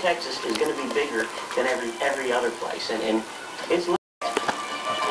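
A television plays nearby.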